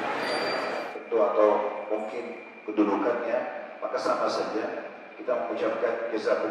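A man speaks calmly into a headset microphone over loudspeakers.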